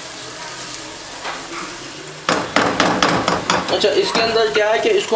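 Food sizzles softly in hot oil.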